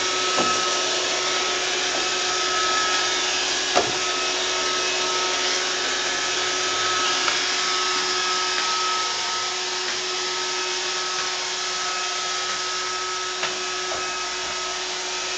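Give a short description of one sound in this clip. A robot vacuum cleaner whirs and hums steadily.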